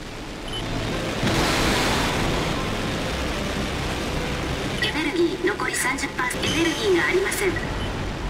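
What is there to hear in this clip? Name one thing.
Jet thrusters roar as a giant robot boosts forward.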